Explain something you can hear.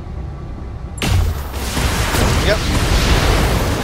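A laser weapon fires with a loud burst.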